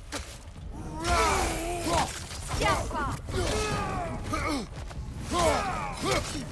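Ice shatters and crackles loudly.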